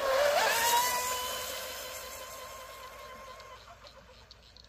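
A small motorboat's engine whines loudly as it speeds away across the water, fading into the distance.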